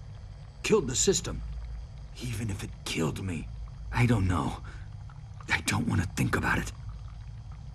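A man speaks calmly in a low, weary voice.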